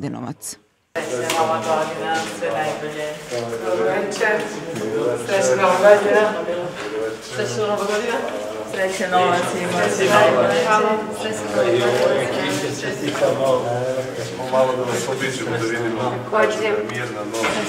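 Several men and women chat and greet each other.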